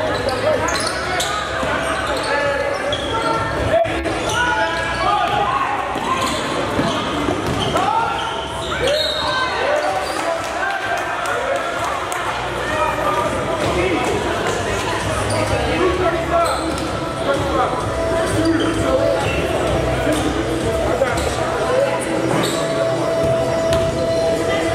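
A crowd of spectators chatters and calls out in an echoing gym.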